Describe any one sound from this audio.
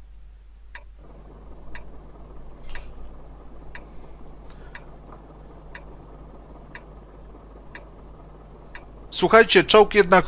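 A tank engine idles with a low, steady rumble.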